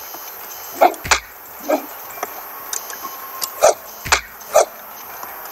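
A sword swings and strikes with sharp thuds.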